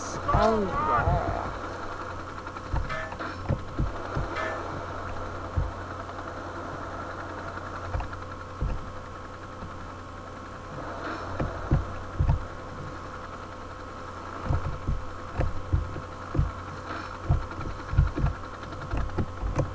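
Dull thumps sound as a helicopter tumbles and strikes things.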